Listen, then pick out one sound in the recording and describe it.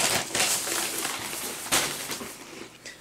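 A man crunches a chip.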